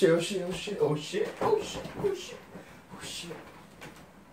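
Pillows rustle and thump softly on a bed.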